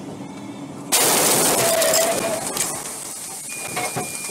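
A windscreen smashes with a sudden crash of glass.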